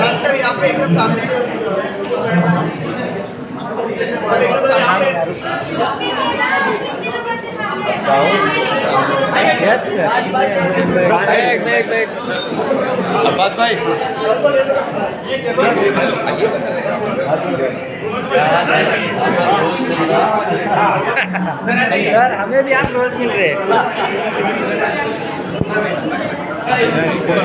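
A crowd of people chatter nearby throughout.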